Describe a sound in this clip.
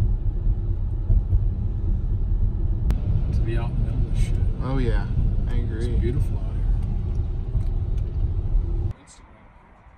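A car engine and tyres rumble steadily from inside a moving car.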